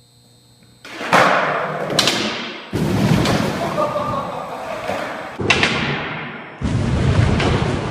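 Cardboard boxes crash and tumble loudly.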